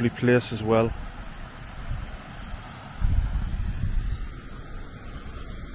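Wind blows outdoors, rumbling low.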